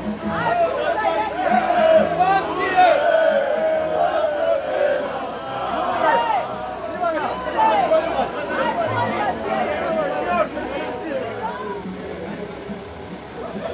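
A crowd of people shouts and chatters nearby outdoors.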